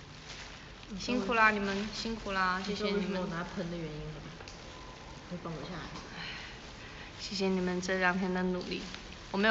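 A young woman speaks close to a microphone in a lively, animated voice.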